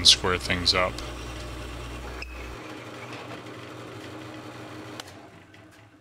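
A drill press bores into hardwood with a Forstner bit.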